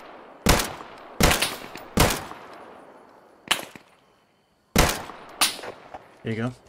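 A rifle fires loud single shots that echo across open ground.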